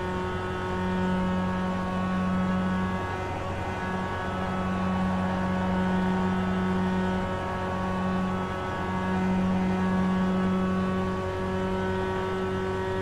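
A race car engine drones at high speed, steady with slight changes in pitch.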